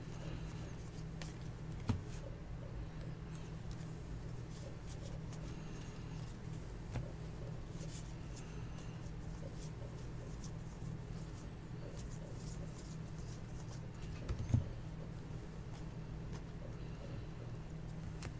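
Trading cards slide and rustle against each other as they are shuffled.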